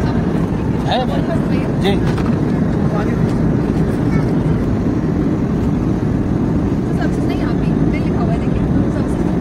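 A steady low roar of aircraft engines fills a cabin.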